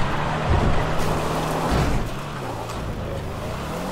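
Tyres skid and rustle over grass and dirt.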